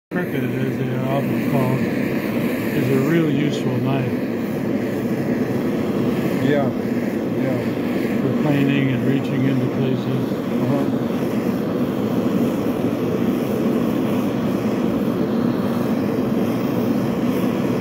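A gas torch hisses and roars steadily.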